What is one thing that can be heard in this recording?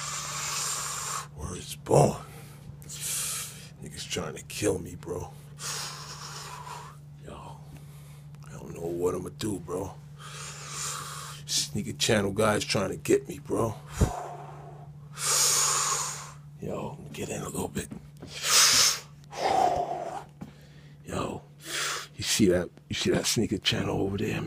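A person speaks softly and whispers close by.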